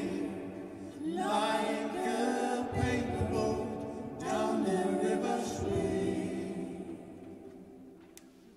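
Several voices sing together in a large echoing hall, then fade.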